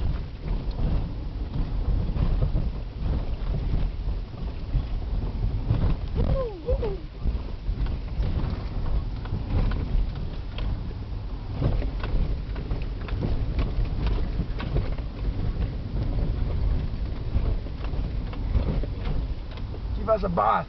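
Raindrops patter on a windscreen.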